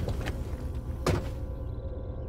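A van door slams shut.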